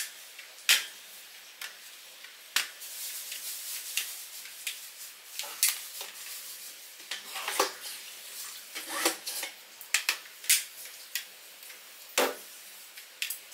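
A mop swishes and wipes across a smooth floor.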